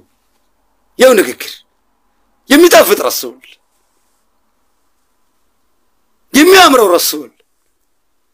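A man speaks close to a microphone in short, animated bursts with pauses between.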